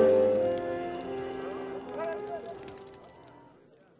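A wood fire crackles and roars.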